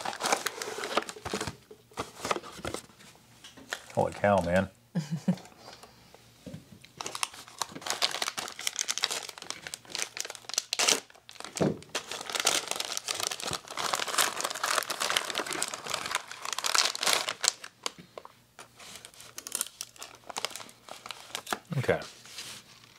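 Wrapping paper crinkles and rustles under handling.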